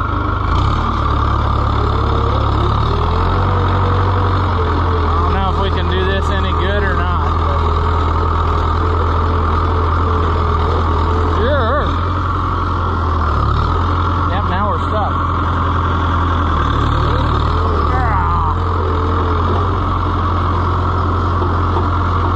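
Dry grass and brush crunch under a tractor's tyres.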